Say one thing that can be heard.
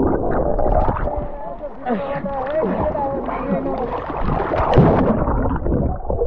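Water splashes loudly close by.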